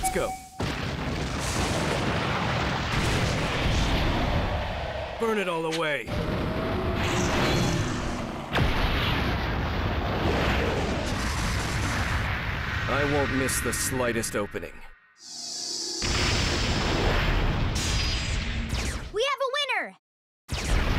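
Heavy blasts roar and rumble loudly, with deep booming crashes.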